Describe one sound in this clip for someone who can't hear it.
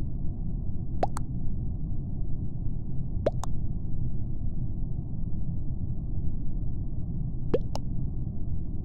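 A short electronic chime sounds as each new chat message arrives.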